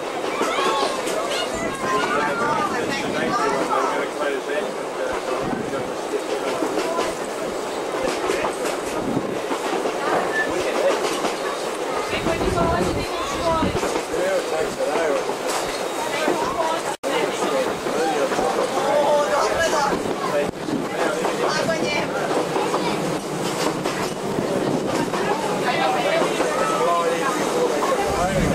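Young children chatter with animation close by.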